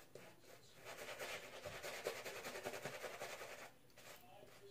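A shaving brush swishes lather across skin.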